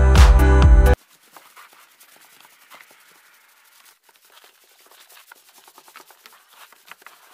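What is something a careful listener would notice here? A paintbrush scrapes and swishes across wooden boards.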